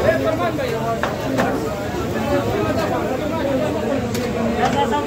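Metal serving spoons clink and scrape against platters.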